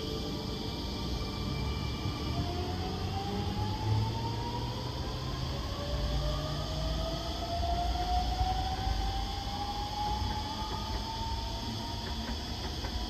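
An electric train pulls away with a rising motor whine and fades into the distance.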